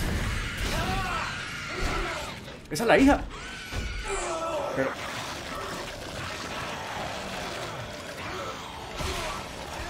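A creature screeches and snarls.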